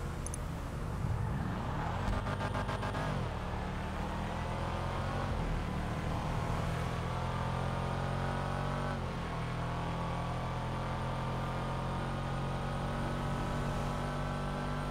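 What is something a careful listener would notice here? A car engine revs up and shifts gears as it speeds along a road.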